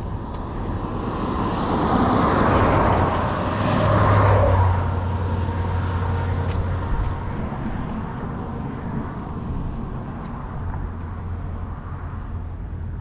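Wind gusts and rumbles across the microphone outdoors.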